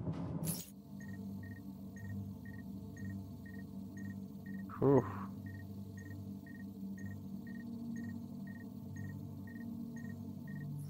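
Soft electronic ticks repeat steadily.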